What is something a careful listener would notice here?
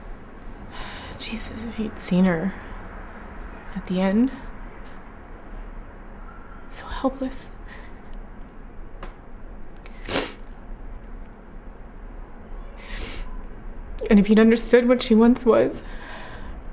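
A young woman speaks softly and haltingly close by.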